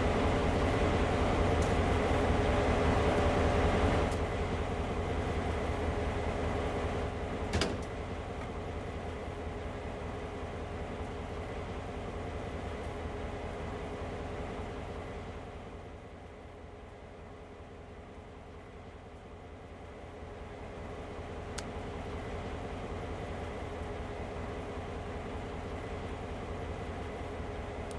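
A diesel locomotive engine idles with a steady low rumble.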